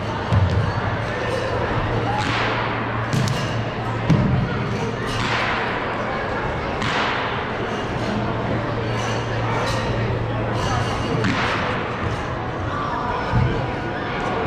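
A crowd murmurs throughout a large echoing gym.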